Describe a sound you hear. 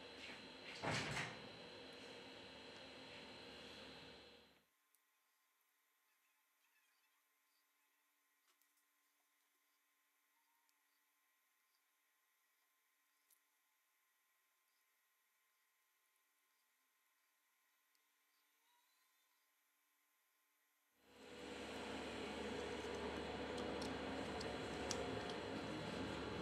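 Small plastic and metal parts click softly as they are handled.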